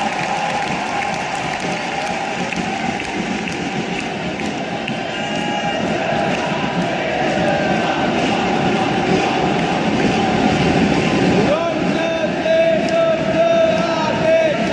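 A large stadium crowd chants and sings loudly through a loudspeaker.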